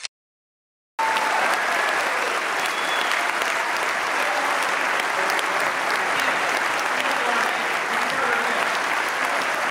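An audience claps and applauds steadily.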